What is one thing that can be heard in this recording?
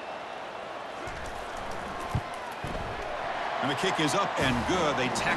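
A stadium crowd cheers louder as a kick is made.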